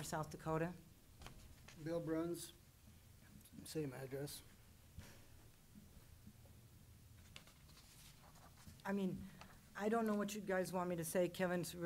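A middle-aged woman speaks calmly into a microphone, with pauses.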